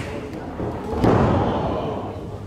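A wrestler's body slams hard onto the ring mat.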